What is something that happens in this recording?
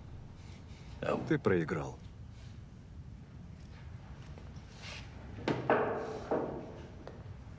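A middle-aged man speaks in a low, tense voice nearby.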